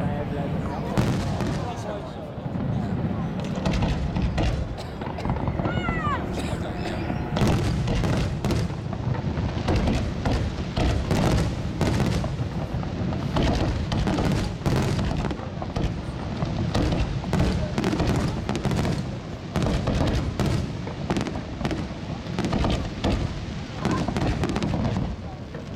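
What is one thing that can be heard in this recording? Fireworks burst and crackle overhead in rapid bangs.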